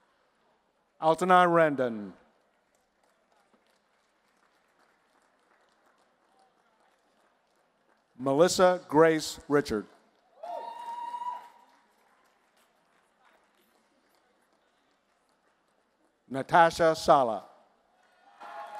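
A woman reads out names through a microphone in a large hall.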